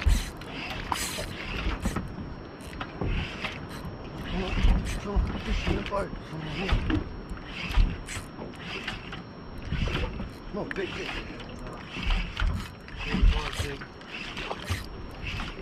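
A fishing reel whirs as its line is wound in.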